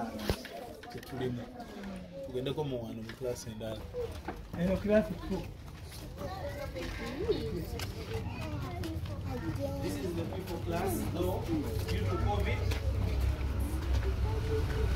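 A crowd of men and women talk nearby.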